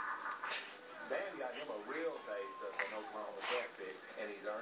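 A baby giggles and babbles softly.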